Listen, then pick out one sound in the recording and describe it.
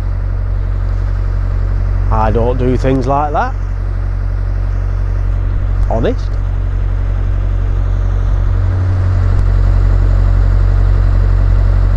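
A boat engine hums low and steadily.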